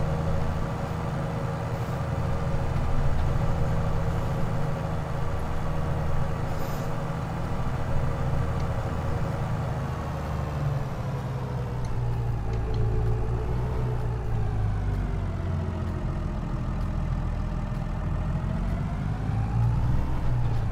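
A tractor engine drones steadily, its pitch falling and then rising and falling as it slows and speeds up.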